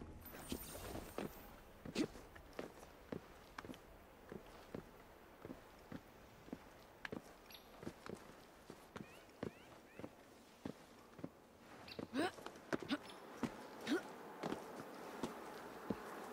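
Hands and feet scrape and thump while climbing a brick wall.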